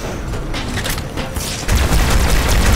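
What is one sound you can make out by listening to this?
A beam weapon fires with a sharp zap.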